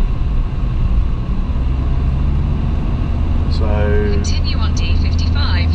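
Road noise and engine rumble drone steadily from inside a moving car.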